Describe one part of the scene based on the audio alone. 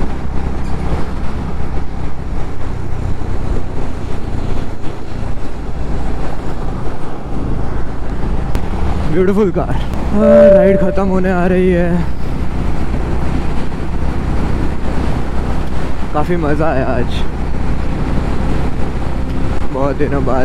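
Wind rushes past steadily outdoors.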